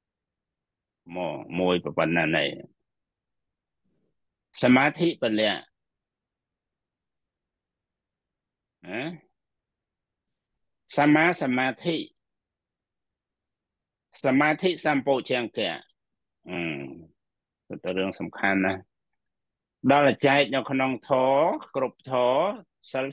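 A middle-aged man speaks calmly in short phrases with pauses, heard through an online call.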